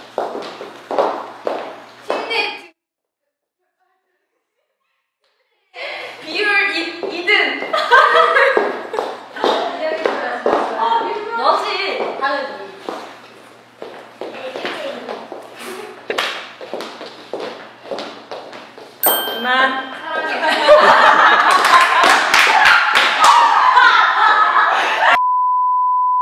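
Young women talk and giggle playfully close by.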